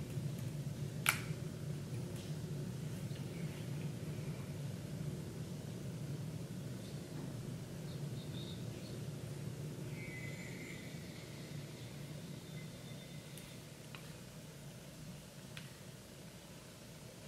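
A young woman speaks quietly close to a microphone.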